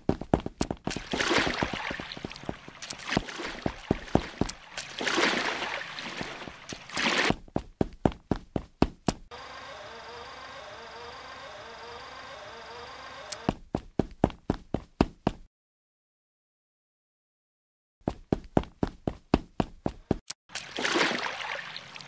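Water splashes and rushes as a small boat paddles along.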